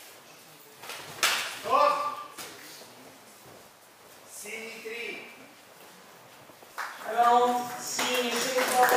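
A man shouts loudly nearby in an echoing hall.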